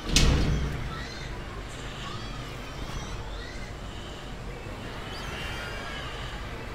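A large bird lets out short chirping calls.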